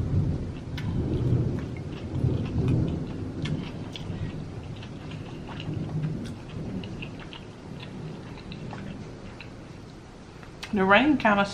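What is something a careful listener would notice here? A woman chews food wetly, close to a microphone.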